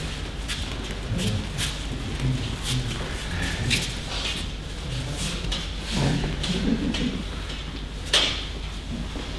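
Bare feet patter and thump on mats in an echoing hall.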